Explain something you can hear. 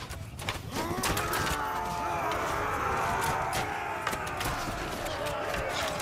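Weapons clash and knock in a battle.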